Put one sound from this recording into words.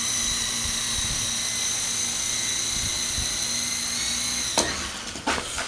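A small toy helicopter whirs with a high steady whine.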